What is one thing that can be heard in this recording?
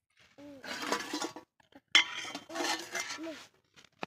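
A metal lid scrapes off a steel pot.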